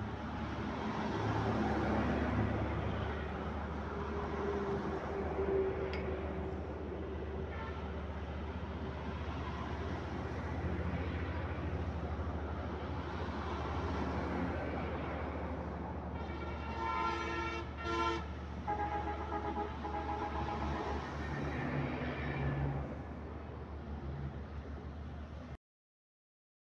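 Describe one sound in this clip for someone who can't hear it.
Trucks and buses rumble past on a nearby road, outdoors.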